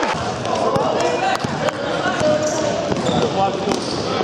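A basketball bounces on a court.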